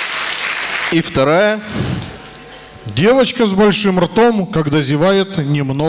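A middle-aged man speaks into a microphone over loudspeakers, announcing formally.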